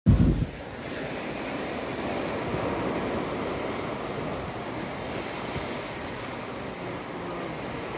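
Waves break and wash over rocks close by.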